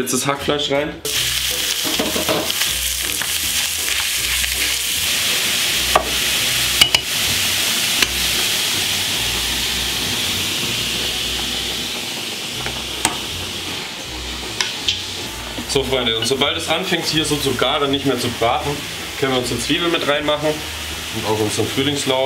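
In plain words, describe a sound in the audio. Minced meat sizzles loudly in a hot pan.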